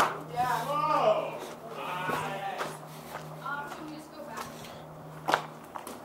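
Footsteps crunch over rubble and loose boards.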